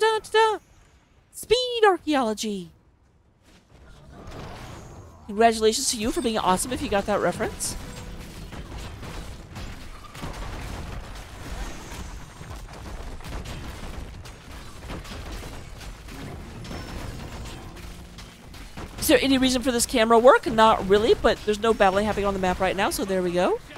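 Fighting sound effects of a video game clash and burst with magic blasts and hits.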